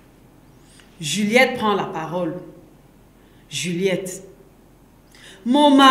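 A young woman reads aloud clearly into a close microphone, with pauses.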